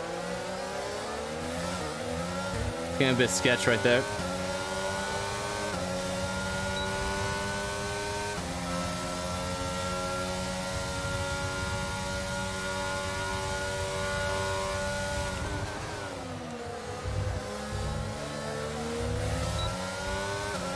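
A racing car engine roars, rising in pitch and dropping sharply with each gear change.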